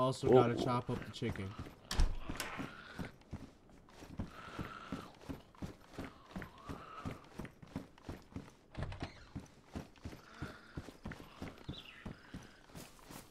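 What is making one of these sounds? Boots thud steadily on wooden boards and stairs.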